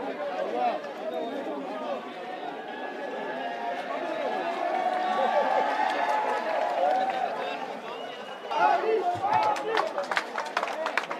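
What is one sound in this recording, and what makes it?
A crowd of men chatters and shouts close by.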